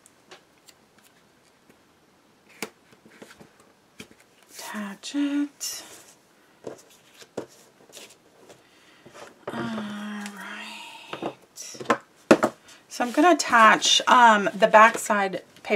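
A sheet of card slides and rustles on a table.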